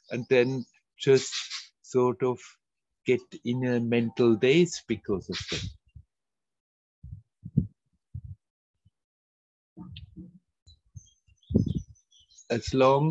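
An older man speaks calmly and thoughtfully over an online call, with pauses.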